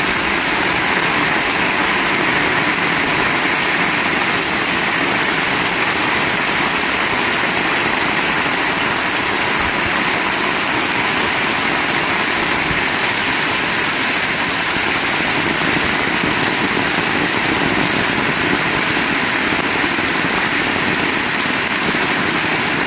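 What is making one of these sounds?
Heavy rain pours steadily onto a road outdoors.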